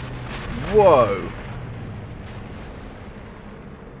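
Explosions rumble in the distance.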